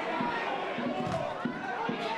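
A football is struck with a dull thud.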